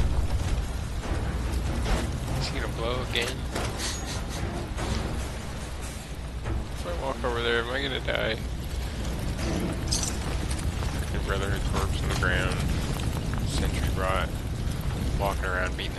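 Flames crackle and roar.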